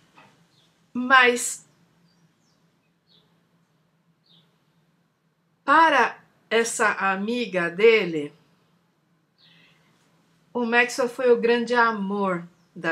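A middle-aged woman speaks with animation into a microphone, in bursts with pauses, heard as over an online call.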